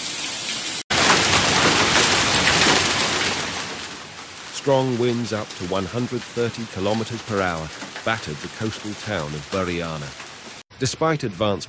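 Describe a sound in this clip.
Heavy rain and hail drum on parked cars.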